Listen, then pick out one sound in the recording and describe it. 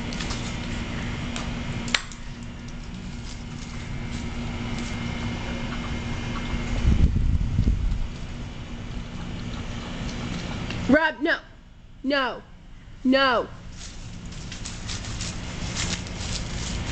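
A dog rustles through dry leaves and bushes.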